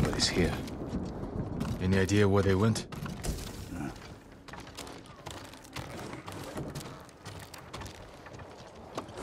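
Armoured footsteps thud on a wooden floor.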